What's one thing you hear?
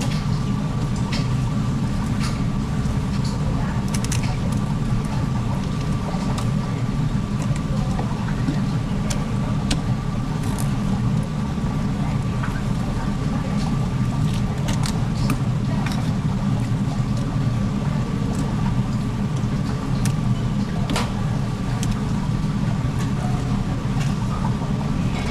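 A knife scrapes and clicks against fish bones on a cutting board.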